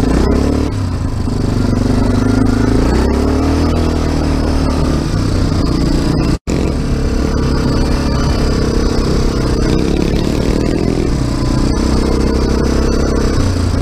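A quad bike engine roars close by, revving up and down as it drives.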